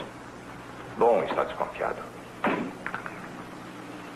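A second man answers in a calm voice.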